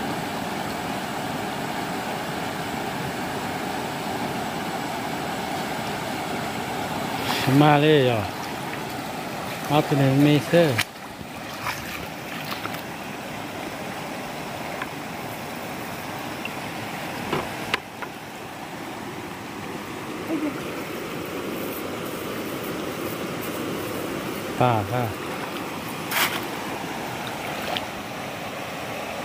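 A stream rushes and babbles steadily over rocks.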